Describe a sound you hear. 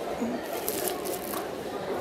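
Plastic wrapping crinkles under a hand.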